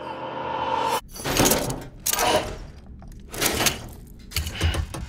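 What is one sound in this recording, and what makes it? A clip on a strap clinks and rattles.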